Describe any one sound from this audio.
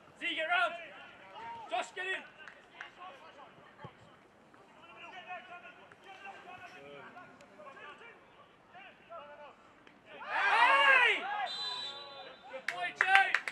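Male players shout to each other across an open field.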